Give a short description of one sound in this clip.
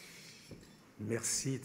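A middle-aged man starts speaking calmly into a microphone.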